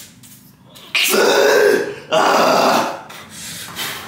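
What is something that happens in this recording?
A man grunts loudly with effort, close by.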